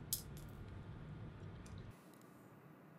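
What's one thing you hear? A metal tool clicks and knocks against a vise.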